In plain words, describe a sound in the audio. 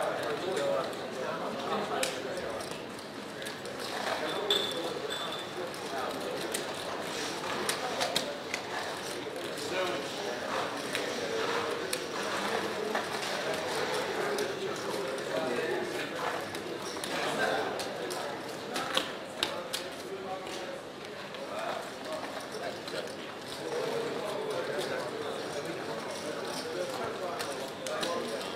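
Casino chips click and clatter.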